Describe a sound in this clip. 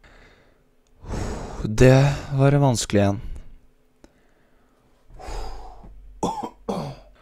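A young man speaks loudly and with animation into a close microphone.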